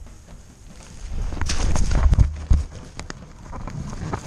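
Dry grass rustles and scrapes against the microphone.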